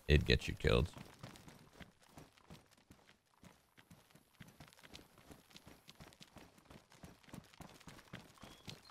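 Footsteps crunch softly over grass and rock.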